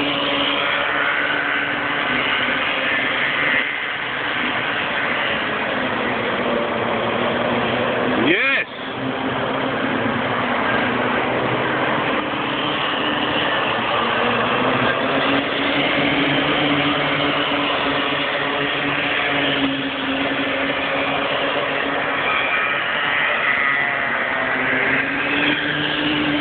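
Kart engines buzz and whine loudly as they race around a track outdoors.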